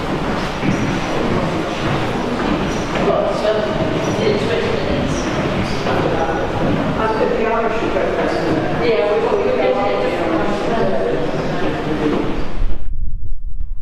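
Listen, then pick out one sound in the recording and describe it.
A cable car rumbles steadily as it glides along its cable.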